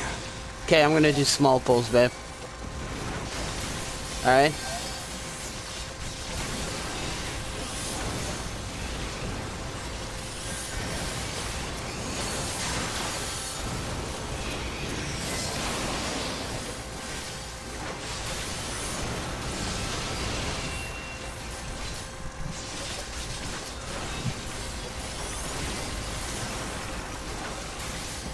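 Magic spells crackle and whoosh in a fast fight.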